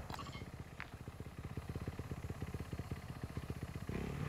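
A dirt bike engine sputters and rumbles rapidly.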